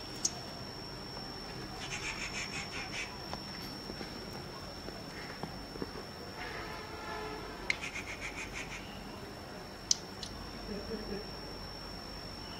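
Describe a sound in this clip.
Oil sizzles gently in a pan over a fire.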